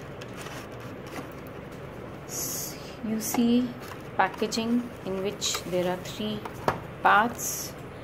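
A plastic tray crinkles and clicks.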